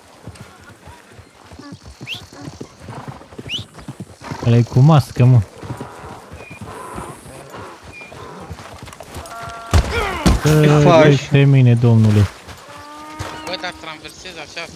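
A man's footsteps crunch on a dirt road.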